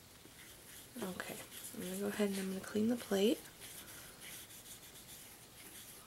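A soft cloth wipes and rubs across a metal plate.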